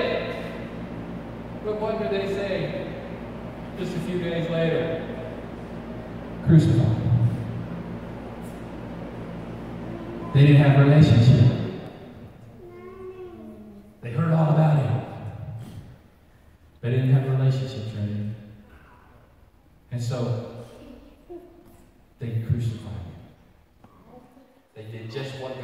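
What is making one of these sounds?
A middle-aged man speaks with animation into a microphone, heard through a loudspeaker in an echoing room.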